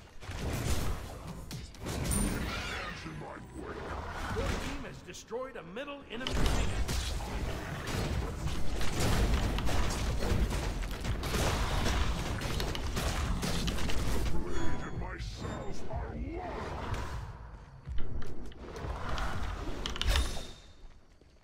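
Game combat effects clash and blast.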